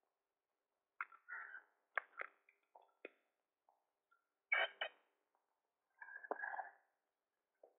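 A metal gate clanks and creaks as it swings open.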